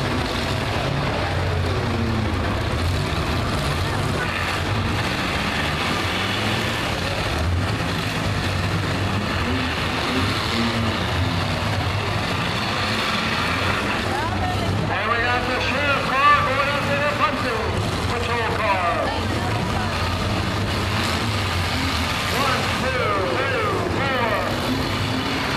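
A crowd cheers and shouts loudly nearby.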